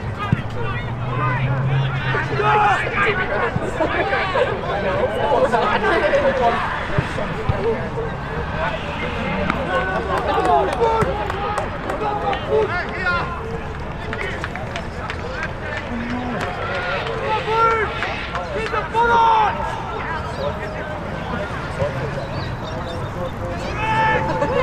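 A crowd of spectators talks and calls out nearby, outdoors.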